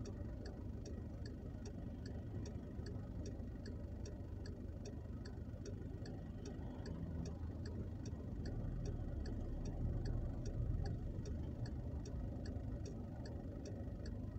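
Tyres rumble on a wet road.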